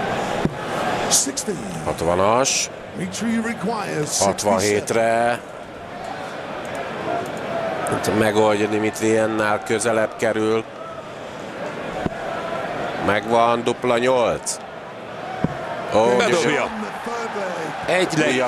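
A middle-aged man calls out loudly through a microphone in a large echoing hall.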